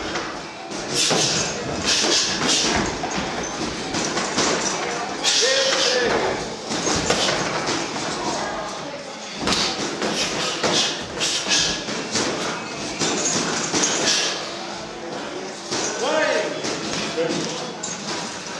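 Boxing gloves thud as boxers trade punches in an echoing hall.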